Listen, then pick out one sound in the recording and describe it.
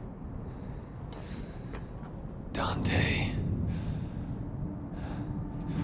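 A young man speaks tensely, close by.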